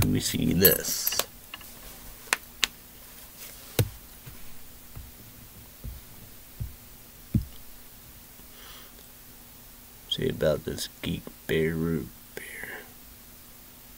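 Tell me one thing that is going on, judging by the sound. A young man talks calmly and close by, with pauses.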